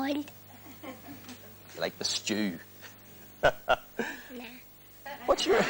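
A young boy talks and laughs into a microphone.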